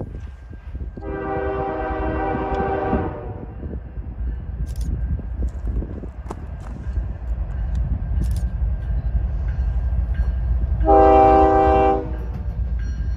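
A locomotive horn blares loudly.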